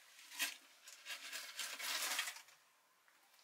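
Water pours from a kettle into a pot.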